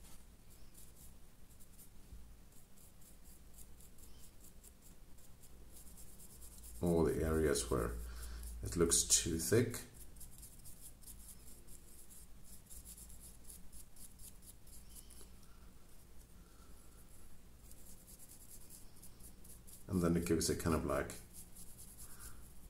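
A brush dabs and scrapes softly against a small model.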